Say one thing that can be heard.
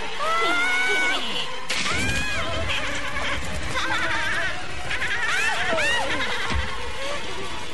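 A woman screams in agony.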